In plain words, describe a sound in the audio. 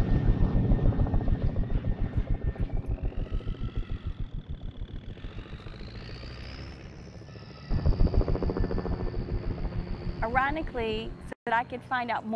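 A helicopter's rotor thumps loudly overhead.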